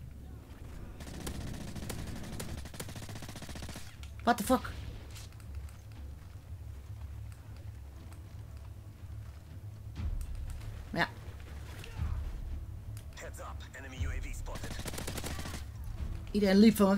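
Guns fire in rapid bursts.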